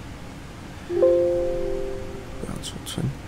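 A computer alert chime sounds once.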